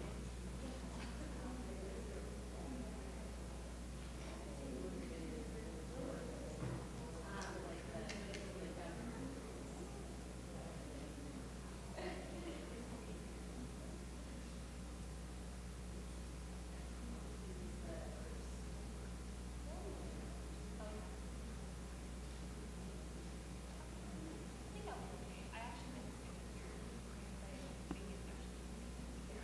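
Young people talk quietly at a distance in a large echoing hall.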